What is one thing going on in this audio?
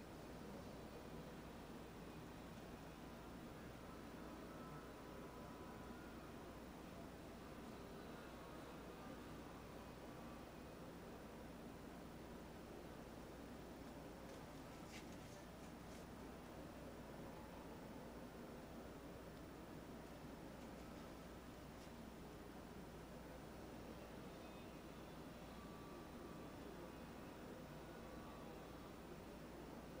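A paintbrush softly strokes across a canvas.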